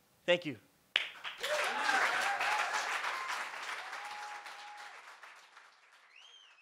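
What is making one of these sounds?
An audience applauds and cheers in a room.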